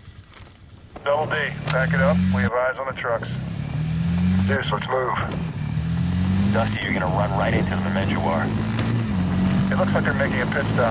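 A quad bike engine revs and drones as it rides over rough ground.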